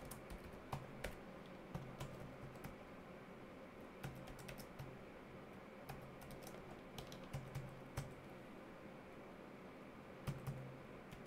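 A keyboard clicks in short bursts of typing, close by.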